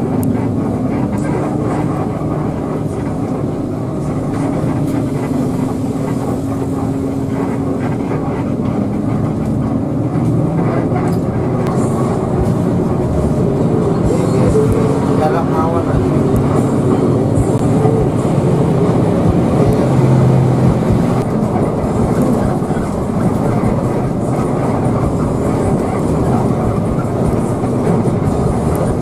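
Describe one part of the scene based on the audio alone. A bus engine drones steadily from inside the cab.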